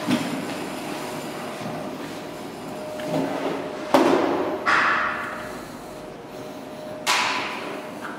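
Thin sheet metal wobbles and rumbles as it is pulled out.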